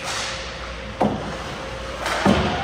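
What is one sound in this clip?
Hockey sticks clack against each other and the puck at a faceoff in an echoing rink.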